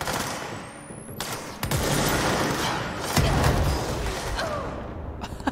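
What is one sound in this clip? Gunshots fire in quick bursts and echo in a large concrete hall.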